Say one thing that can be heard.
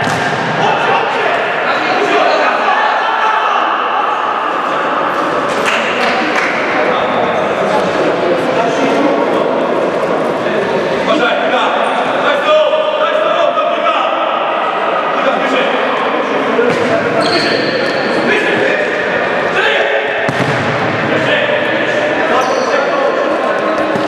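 Young men shout to each other across a large echoing hall.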